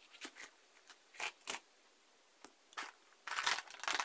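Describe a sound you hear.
A plastic pen is set down on paper.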